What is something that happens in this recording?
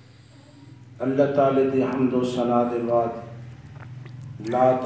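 A man chants in a deep, drawn-out voice through a microphone and loudspeaker.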